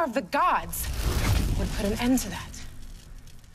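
A magical flame roars with a loud whoosh.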